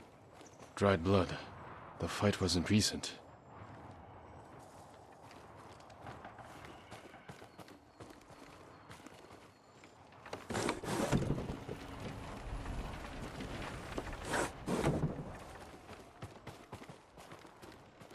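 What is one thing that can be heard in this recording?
Footsteps tread softly across a wooden floor.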